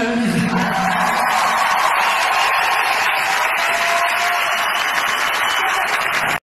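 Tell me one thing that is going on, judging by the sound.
A live band plays loudly in a large echoing hall.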